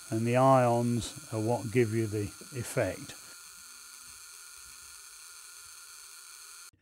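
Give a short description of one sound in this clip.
An electric discharge tube hums steadily.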